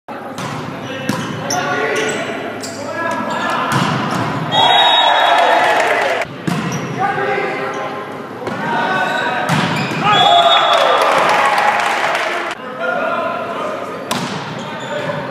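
A volleyball is struck hard by hands in an echoing gym.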